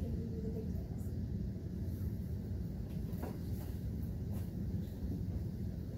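A woman speaks calmly.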